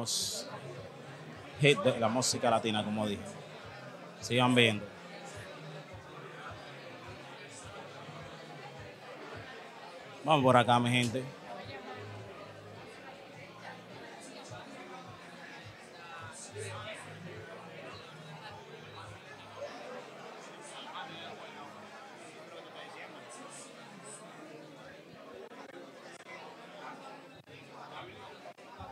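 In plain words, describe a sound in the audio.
A crowd murmurs and chatters in a room.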